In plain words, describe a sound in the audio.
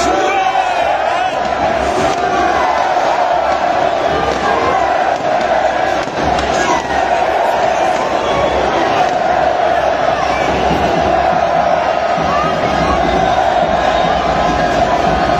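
A large stadium crowd chants and roars loudly all around.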